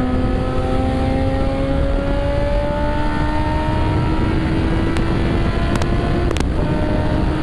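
A second motorcycle engine revs and rises in pitch close by.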